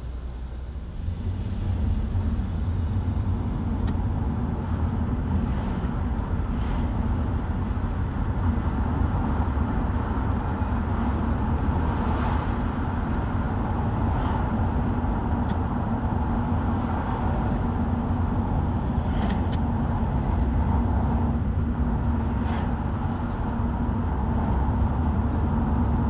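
A car engine hums and rumbles from inside the car, growing louder as the car pulls away and drives on.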